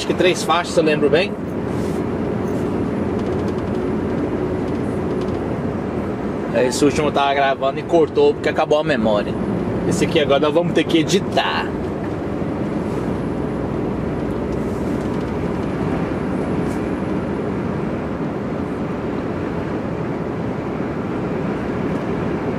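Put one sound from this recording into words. Tyres roar along a motorway.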